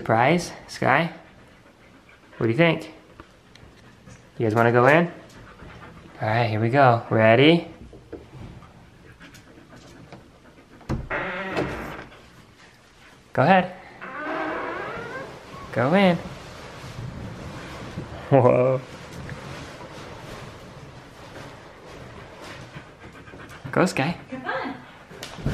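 A husky howls and yowls up close in drawn-out, wavering cries.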